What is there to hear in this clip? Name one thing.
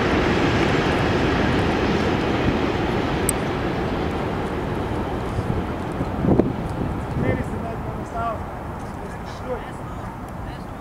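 Wind blows across an open outdoor field.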